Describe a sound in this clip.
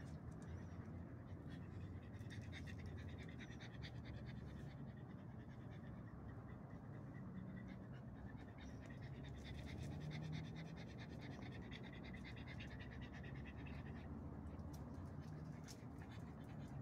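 Dogs' paws scuffle on hard ground as they play.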